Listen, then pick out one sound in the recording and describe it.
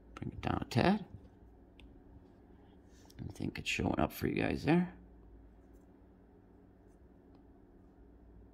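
A stylus taps and scrapes lightly on a glass tablet.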